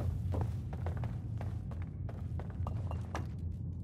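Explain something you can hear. Heavy footsteps crunch over debris.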